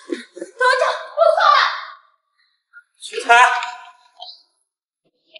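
A young man pleads in a strained, pained voice.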